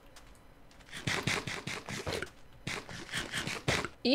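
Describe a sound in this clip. Food is chewed with quick crunchy bites.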